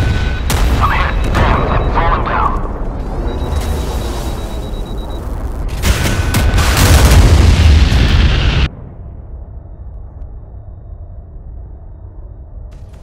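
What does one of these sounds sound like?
Jet engines roar loudly.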